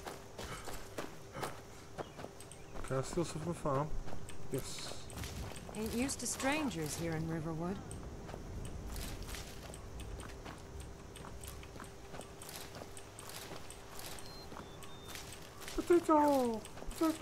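Footsteps crunch on soft earth.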